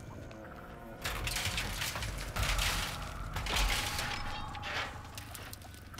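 Someone rummages through a container with a loud rustling.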